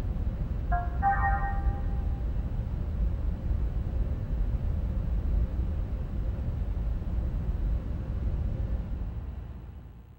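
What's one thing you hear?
A low mechanical hum drones steadily and fades away at the end.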